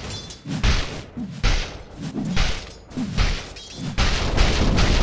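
Spell blasts and hits crash again and again in a game fight.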